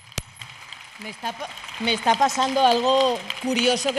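A young woman speaks with animation into a microphone in a large echoing hall.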